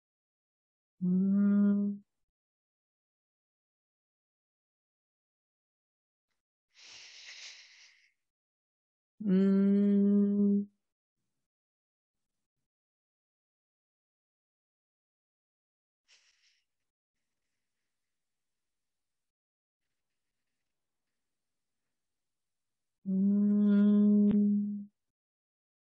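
An older woman chants a long, steady held tone, again and again with pauses.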